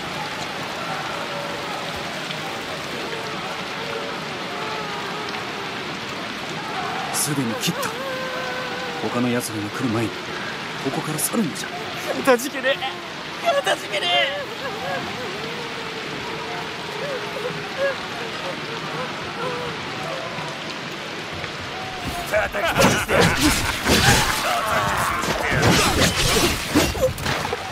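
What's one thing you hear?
Wind gusts through the storm.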